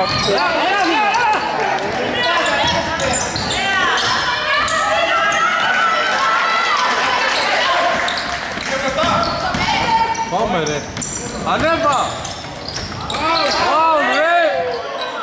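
Sneakers squeak sharply on a hard court in an echoing hall.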